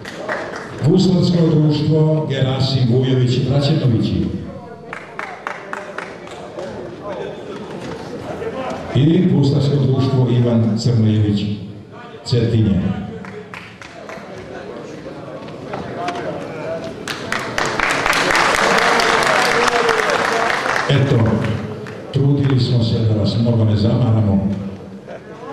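A man speaks through a loudspeaker in a large echoing hall, announcing.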